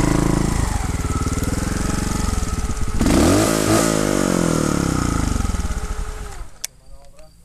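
A motorcycle engine idles close by with a rapid thumping, then cuts out.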